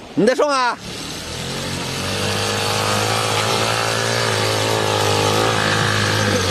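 A motor tricycle engine rumbles as the vehicle drives closer.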